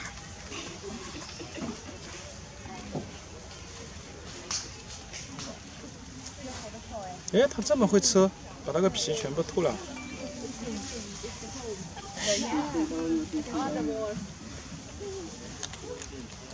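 A monkey chews food with soft smacking sounds.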